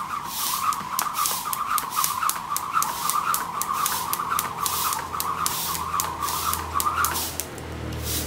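A jump rope whirs and slaps the ground in a quick, steady rhythm.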